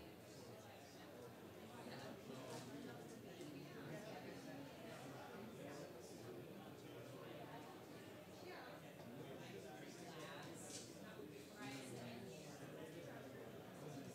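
A crowd of men and women murmur and chat at once in a large room.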